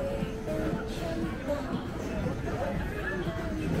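Electronic music plays from arcade machines.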